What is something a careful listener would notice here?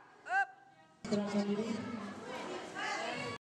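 A crowd of young women chatters and murmurs nearby.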